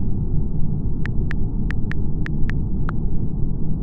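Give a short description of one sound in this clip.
Keyboard keys tick as they are tapped.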